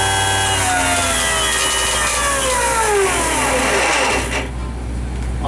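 Spark plugs buzz and snap rapidly as they fire.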